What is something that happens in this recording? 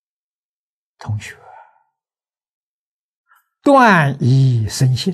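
An elderly man speaks calmly and warmly into a close microphone, with pauses between phrases.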